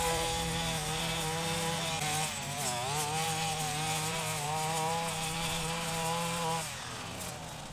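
A brush cutter engine drones steadily and then stops.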